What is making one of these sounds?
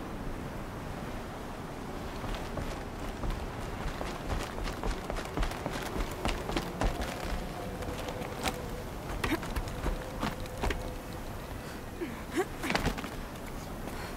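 Footsteps thud quickly on wooden planks and rock.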